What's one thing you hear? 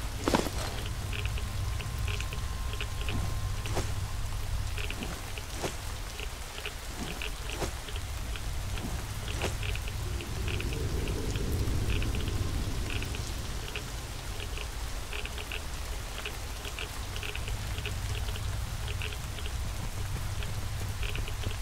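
Footsteps tap steadily on a metal pipe.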